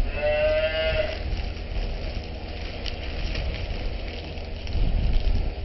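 Plastic wrapping crinkles as hands handle it.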